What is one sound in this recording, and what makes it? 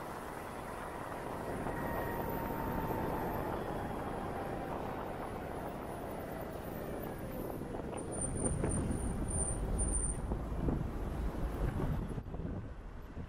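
A motorcycle engine hums steadily as it rides along.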